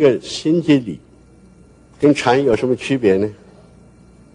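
An elderly man speaks calmly through a microphone.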